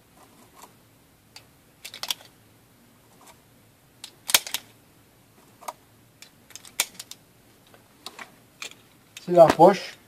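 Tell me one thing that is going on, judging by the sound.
Metal parts of a pistol click and rattle.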